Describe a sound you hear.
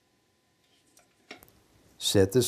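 Metal parts clink softly as they are handled.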